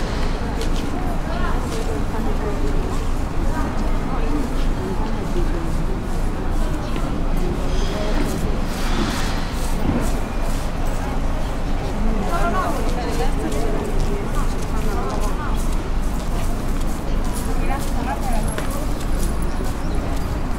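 Voices of women and men murmur nearby in an open space.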